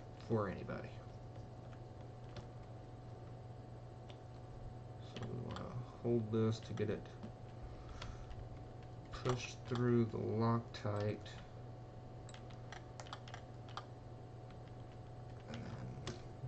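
A screwdriver clicks and scrapes against plastic parts.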